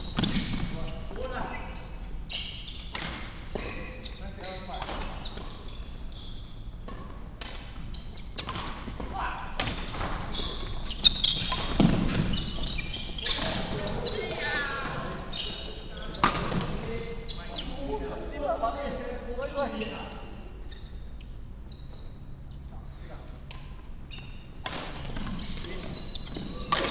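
Sneakers squeak and patter on a wooden floor.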